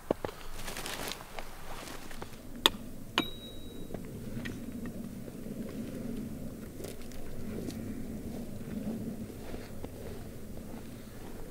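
Twigs rustle and scrape as a man drags branches.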